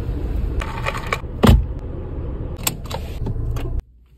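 A plastic cup is set down in a cup holder.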